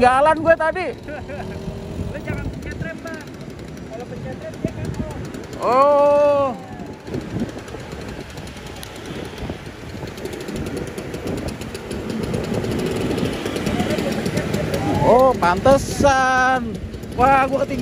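Scooter engines putter and hum steadily as several scooters ride along a road.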